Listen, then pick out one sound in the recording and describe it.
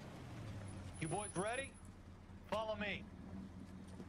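A man calls out loudly nearby.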